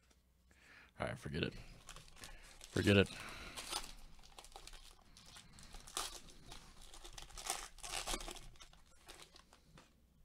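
Plastic wrapping crinkles and tears as it is pulled open.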